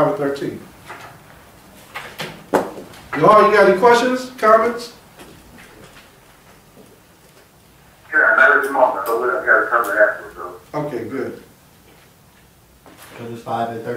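A man speaks calmly into a nearby microphone, in short phrases with pauses.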